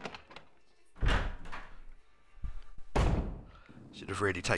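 A heavy wooden door creaks open and bangs.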